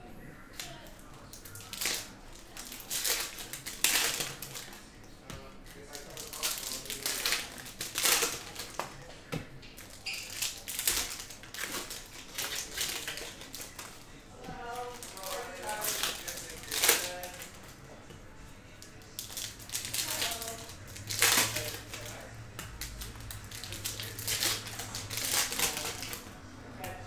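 Foil card wrappers crinkle and rustle as hands handle them.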